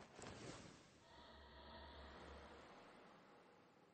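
A soft game menu whoosh sounds as a panel opens.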